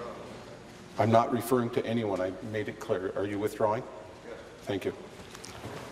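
A man speaks loudly and formally into a microphone in a large echoing hall.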